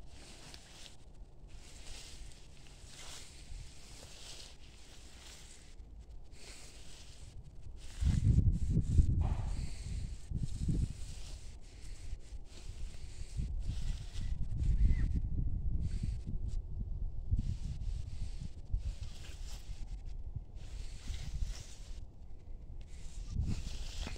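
Grass and dry leaves rustle under a dog's paws.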